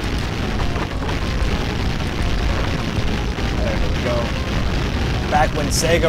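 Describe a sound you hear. Video game explosions boom and crackle rapidly.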